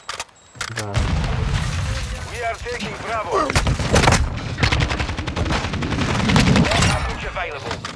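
Rapid gunfire bursts from an automatic rifle.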